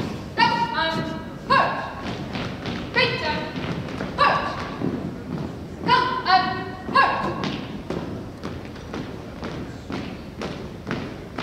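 Boots stamp in step on a wooden floor.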